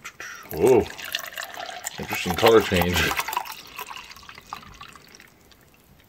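Water pours from a plastic bottle into a glass.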